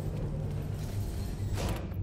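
Heavy boots step on a hard floor.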